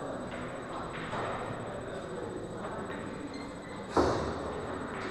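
A cue strikes a pool ball with a sharp click.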